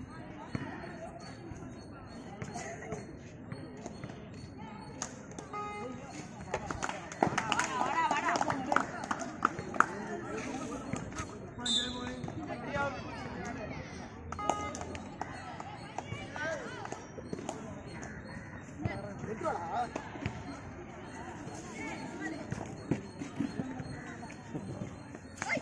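A crowd of young men shouts and cheers nearby outdoors.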